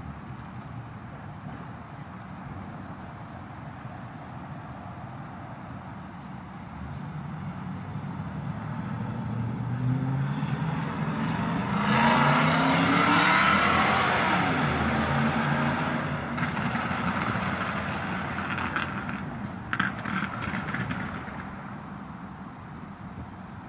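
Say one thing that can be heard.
A large vehicle's engine idles nearby.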